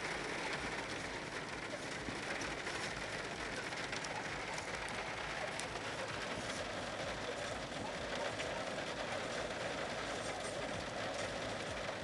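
Hail drums on a car's roof and windows, heard from inside the car.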